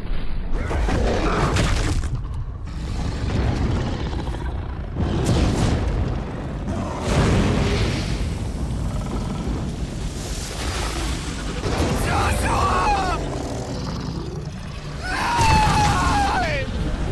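A huge beast growls and rumbles deeply.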